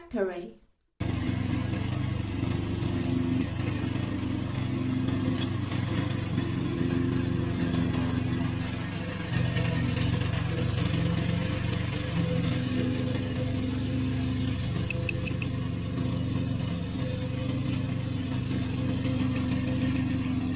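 A petrol mower engine runs with a steady low drone.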